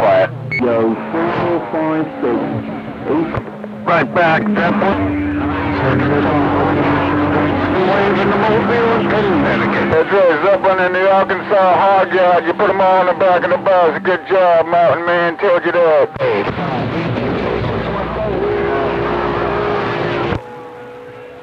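A radio receiver plays a crackling transmission through a small loudspeaker.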